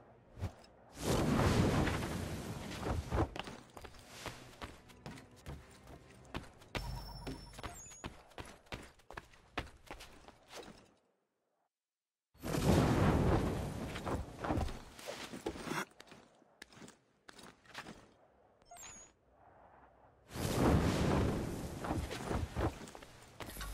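A loud rushing whoosh sweeps past in bursts.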